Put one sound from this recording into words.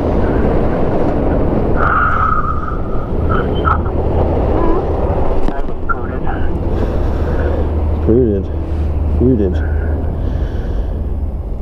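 Wind rushes over the rider's helmet.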